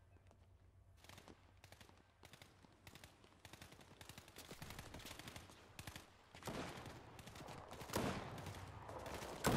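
Footsteps patter quickly across a tiled roof and then stone.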